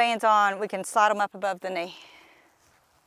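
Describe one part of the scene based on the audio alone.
A woman speaks clearly and calmly, close to a microphone.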